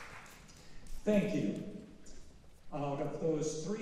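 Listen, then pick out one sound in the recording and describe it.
An elderly man speaks calmly into a microphone, amplified through a hall's loudspeakers.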